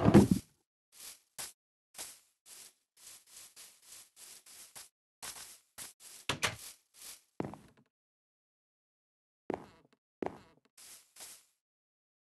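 Footsteps pad softly over grass and wooden floor.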